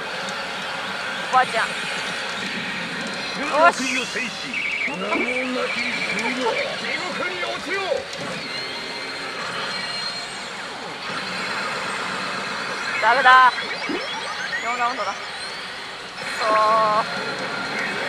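A pachinko machine plays loud electronic music and sound effects.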